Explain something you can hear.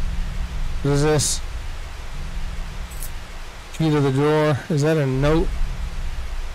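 A man speaks into a close microphone in a drawn-out, sing-song voice.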